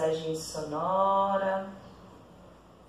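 A woman chants a long, low note close by.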